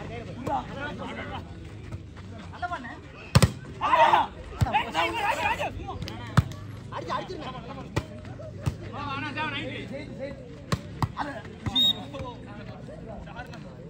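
Young men shout and call out outdoors.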